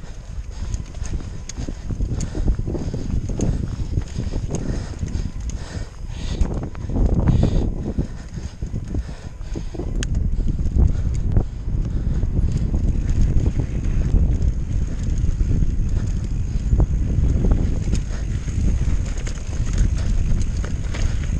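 Bicycle tyres roll and crunch over a rough dirt and stony trail.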